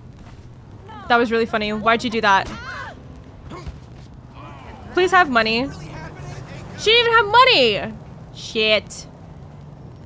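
A young woman talks with animation close to a microphone, in short bursts.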